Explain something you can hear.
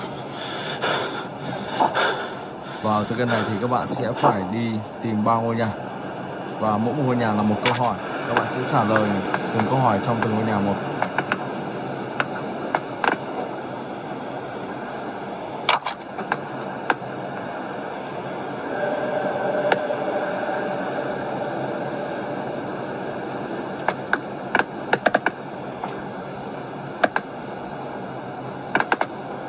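Fingertips tap lightly on a glass touchscreen.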